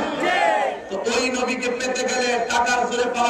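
A man chants in a drawn-out, singing voice.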